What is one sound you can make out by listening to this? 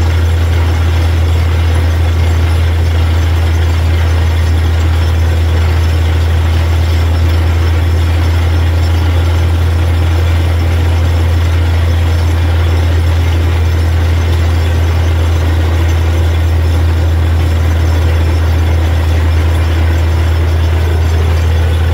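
Water and mud gush and splash from a borehole.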